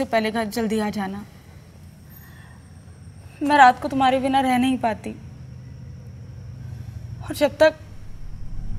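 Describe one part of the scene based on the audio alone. A young woman speaks softly and pleadingly close by.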